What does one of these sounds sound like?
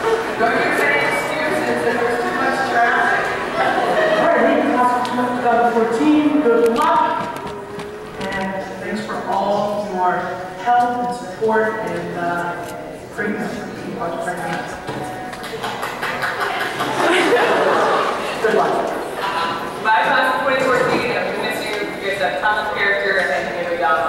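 A woman speaks calmly through a loudspeaker in a large room.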